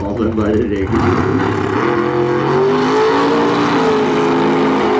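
Two race cars roar away at full throttle, their engines rising in pitch.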